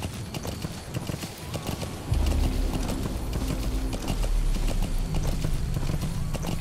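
Horse hooves clop quickly over rough ground.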